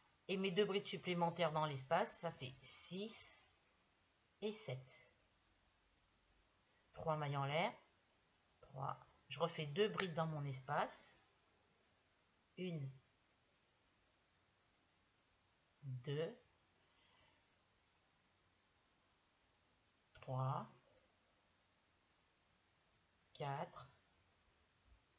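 A woman talks calmly and close by, in short bursts with pauses.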